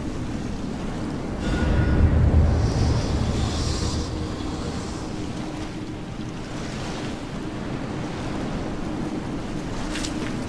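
Waves wash steadily against a rocky shore.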